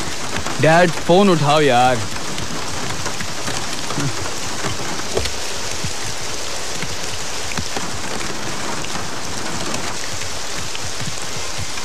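Heavy rain pours steadily outdoors.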